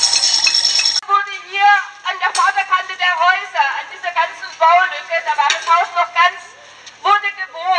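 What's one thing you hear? A group of young men and women sing together close by.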